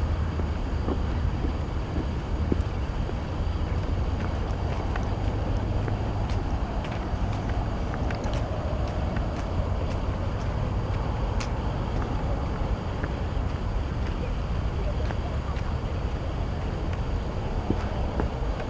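Wind rushes steadily outdoors.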